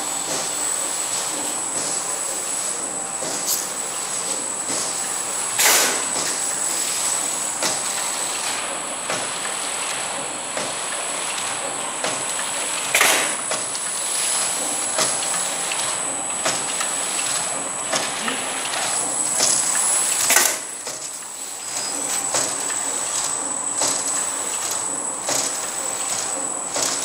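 Metal parts of a packaging machine click and knock in a quick rhythm.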